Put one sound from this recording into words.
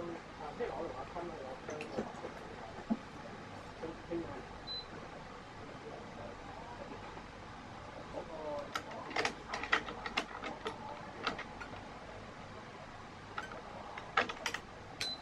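Taut strings click and snap as hands pull them into a clamp.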